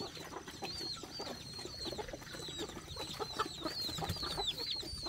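Chickens cluck and chirp.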